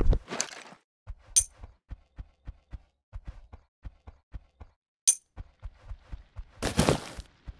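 Footsteps patter quickly on sand.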